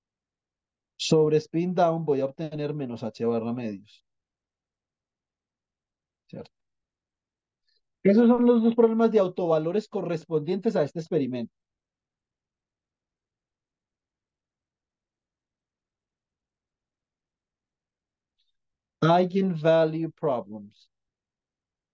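A young man speaks calmly over an online call, in short bursts.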